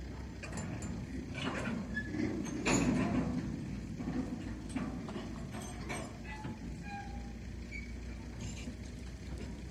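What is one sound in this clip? Freight wagons clank and rattle on the rails.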